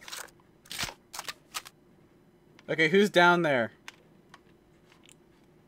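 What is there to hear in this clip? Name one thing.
Footsteps scuff on concrete.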